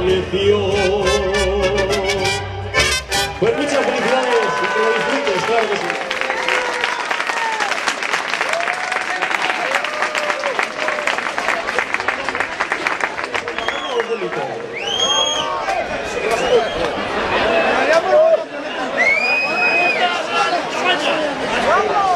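A man sings loudly through a microphone over a loudspeaker.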